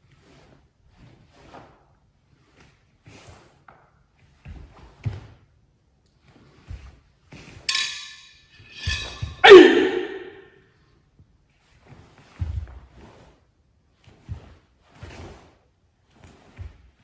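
Bare feet stamp and shuffle on a sports hall floor.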